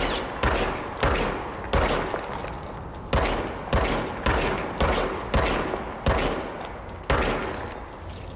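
Pistol shots ring out one after another, echoing.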